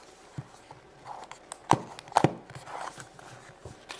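A plastic box clicks and rattles in hands.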